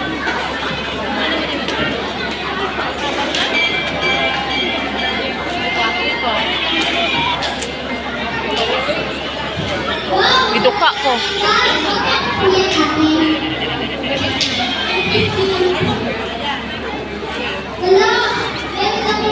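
A large crowd of children chatters and shouts in a big echoing hall.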